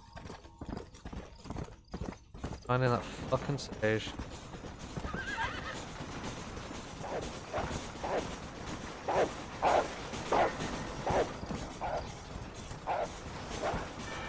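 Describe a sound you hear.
A horse gallops with quick hoofbeats.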